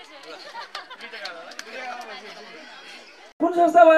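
Men clap their hands.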